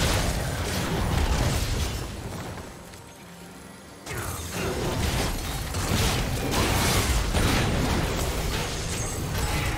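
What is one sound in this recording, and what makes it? Video game spells and blasts crackle and boom in a rapid fight.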